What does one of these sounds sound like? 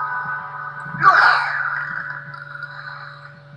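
A magic spell whooshes and shimmers with a bright chiming burst.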